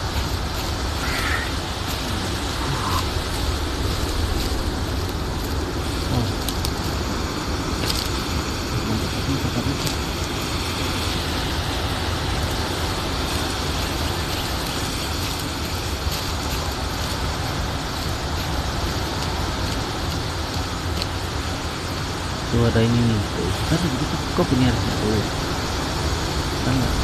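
Footsteps rustle through leaves and undergrowth.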